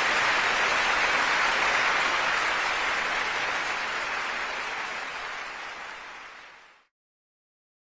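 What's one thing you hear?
An audience applauds loudly in a large hall, then the applause fades away.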